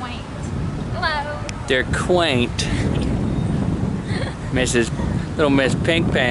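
A young woman talks cheerfully and close by, outdoors.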